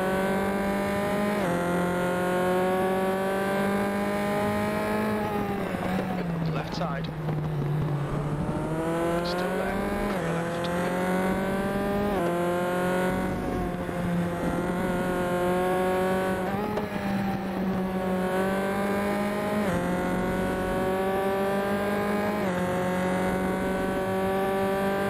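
A racing car engine roars steadily, shifting gears and dropping in pitch as it slows for a bend before revving up again.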